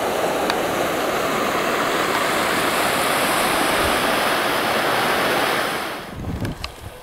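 River water rushes and splashes over rapids.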